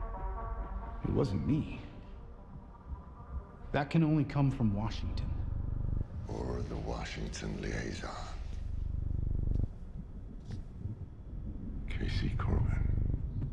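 A middle-aged man talks in a low, firm voice.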